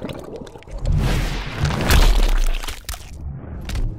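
A body thuds heavily to the ground.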